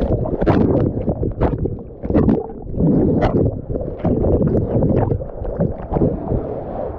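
Water sloshes and splashes close by, heard from right at the surface.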